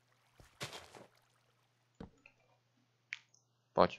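Wooden sticks are set down with a soft knock.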